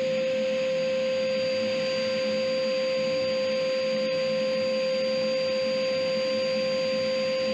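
A dust extractor roars steadily through a hose.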